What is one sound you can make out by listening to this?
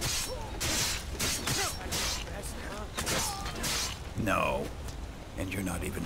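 A man grunts in pain.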